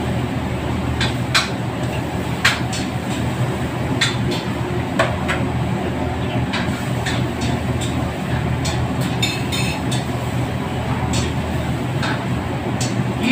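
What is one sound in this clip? A metal ladle scrapes and clanks against a wok.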